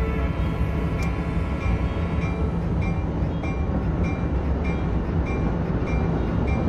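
Train wheels click rhythmically over rail joints.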